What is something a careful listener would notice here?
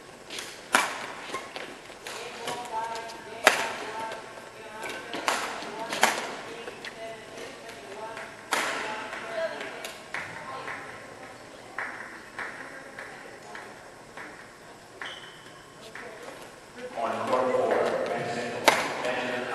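Sports shoes squeak on a synthetic court floor.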